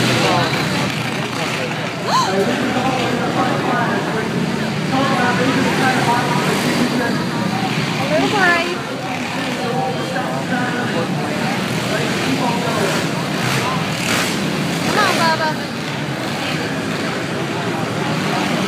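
Dirt bike engines whine and rev around a track.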